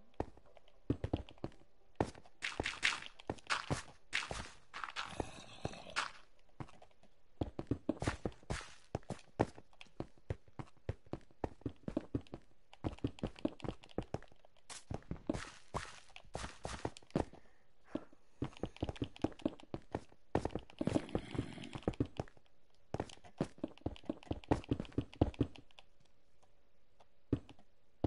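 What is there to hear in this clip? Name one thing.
Stone blocks crunch as they break in a video game.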